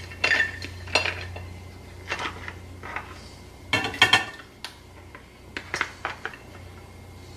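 Metal tongs clink against a ceramic plate.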